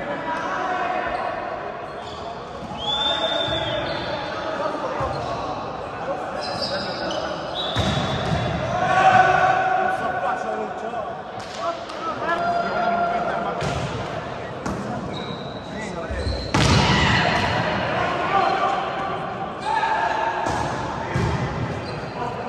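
Young men shout and call out to each other during play in an echoing hall.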